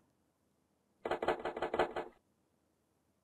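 An old telephone rings in quick bursts.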